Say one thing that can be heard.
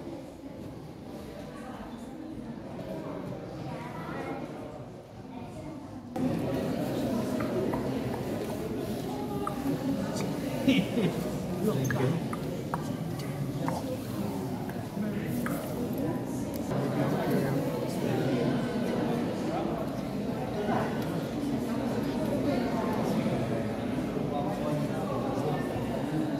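A crowd of visitors chatters in a large echoing hall.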